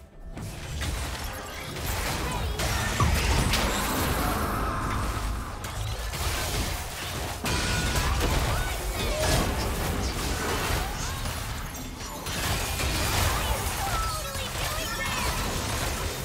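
Game spell effects whoosh, crackle and burst during a fight.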